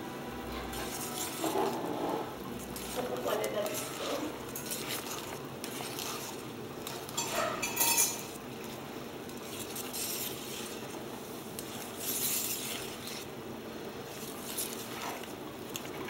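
A whisk scrapes and clatters against a metal bowl as batter is stirred.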